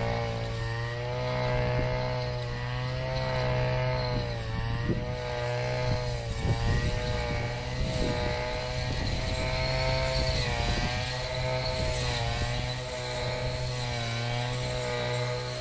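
A string trimmer swishes through tall grass.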